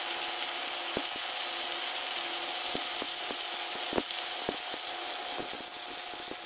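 Sharp pops and spatter snap from the welding arc.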